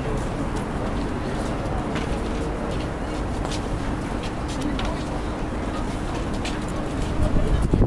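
A crowd murmurs outdoors nearby.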